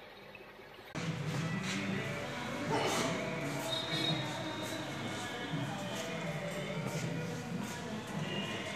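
Men talk quietly nearby in an echoing room.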